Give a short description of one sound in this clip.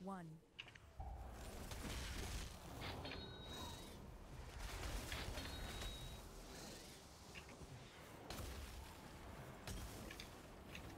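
Game battle effects rumble and crackle steadily.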